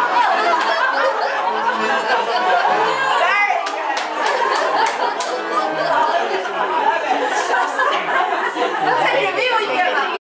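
A group of women chatter and laugh loudly nearby.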